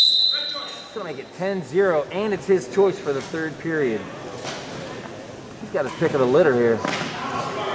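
Spectators shout and cheer loudly in an echoing gym.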